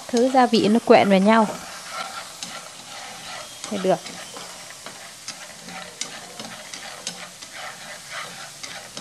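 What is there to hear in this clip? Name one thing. Peanuts rattle and scrape in a pan as they are stirred by hand.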